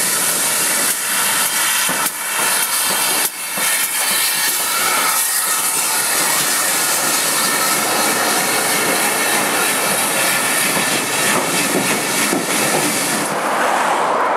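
Train wheels clatter and rumble loudly on the rails close by.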